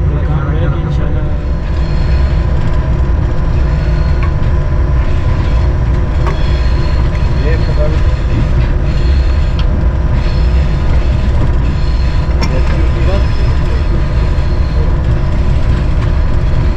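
Train wheels clatter and rumble over the rails.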